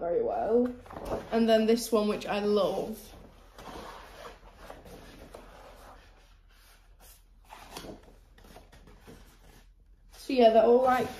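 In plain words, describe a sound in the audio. Large paper sheets rustle and crinkle.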